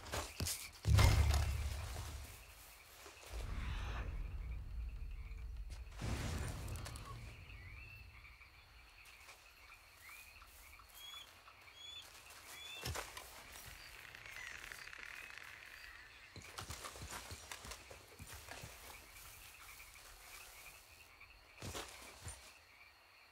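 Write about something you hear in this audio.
Clothing and gear rustle as a man crouches and creeps through grass.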